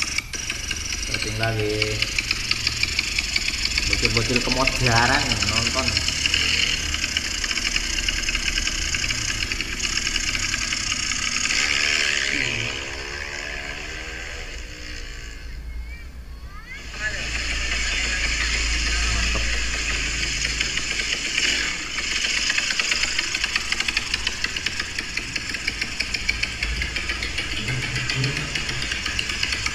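A motorcycle engine revs hard with a rattling, buzzing roar.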